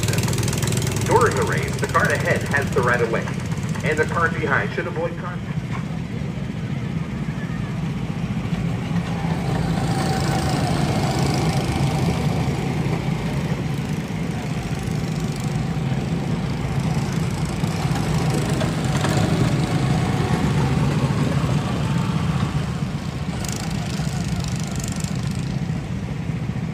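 A small go-kart engine drones steadily, growing louder as the kart drives up close.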